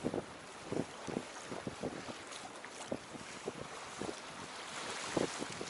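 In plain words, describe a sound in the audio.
Water trickles and splashes steadily into a pool.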